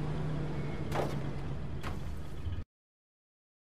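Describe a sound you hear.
A truck engine idles with a low rumble.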